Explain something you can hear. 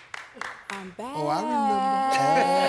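A young woman shouts excitedly.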